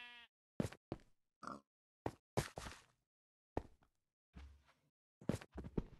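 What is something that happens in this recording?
A pickaxe chips at stone in quick, dry knocks.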